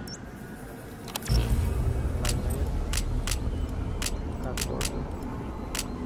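Short menu clicks and beeps sound.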